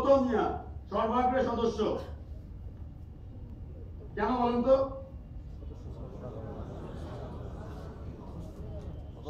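Many people murmur in the background of a room.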